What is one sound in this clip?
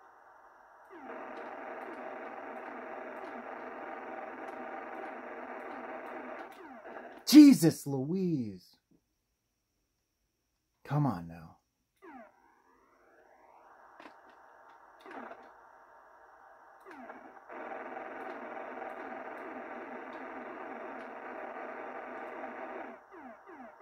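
A video game's engine drone hums steadily from a television speaker.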